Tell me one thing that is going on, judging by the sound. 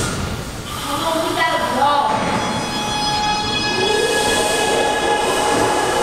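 A subway train pulls away with a rising electric whine.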